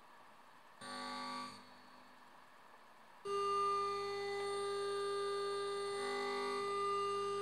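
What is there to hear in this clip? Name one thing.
A synthesizer plays steady electronic tones through a loudspeaker.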